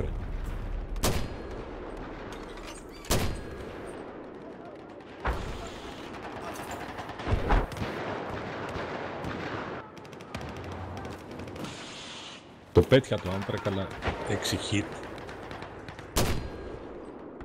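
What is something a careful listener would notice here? A mortar fires with loud, sharp booms, again and again.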